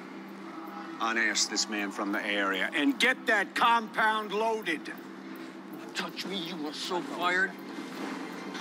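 A man speaks sternly up close.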